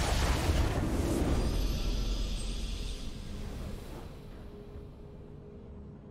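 A triumphant game fanfare swells and then fades.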